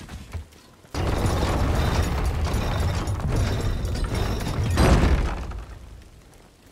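A wooden crank wheel turns with heavy clattering.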